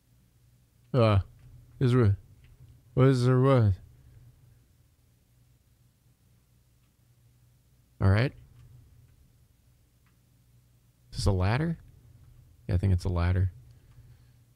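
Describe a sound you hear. A young man speaks in short, animated bursts close to a microphone.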